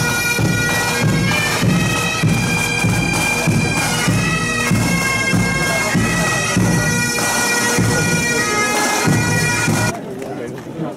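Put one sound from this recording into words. Drums beat a steady marching rhythm.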